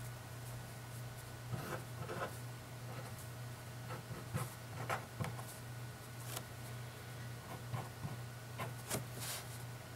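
A marker scratches and squeaks on paper.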